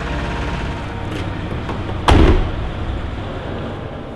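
A heavy truck engine rumbles low and steady.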